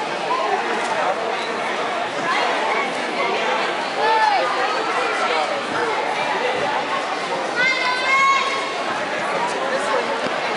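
A crowd of spectators chatters and calls out in a large echoing hall.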